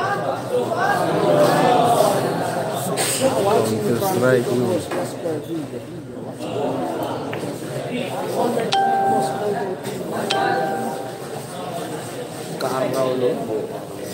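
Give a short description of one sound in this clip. A crowd of young men and boys chatter and call out nearby.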